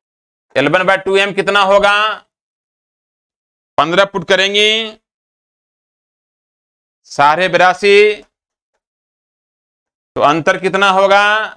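A man speaks clearly and steadily, in short bursts with pauses, close to a microphone.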